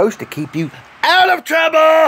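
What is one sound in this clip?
A man shouts loudly with excitement.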